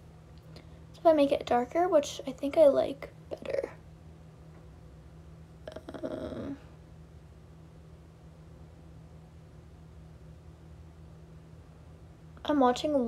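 A young woman talks calmly and close up.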